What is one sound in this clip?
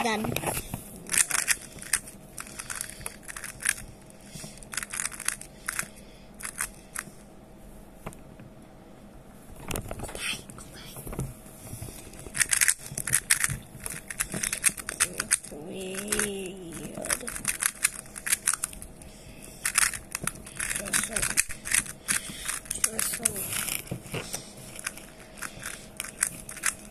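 Plastic puzzle cube pieces click and clack rapidly as the cube is twisted by hand.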